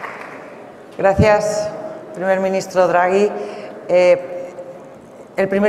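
A woman speaks calmly into a microphone over loudspeakers.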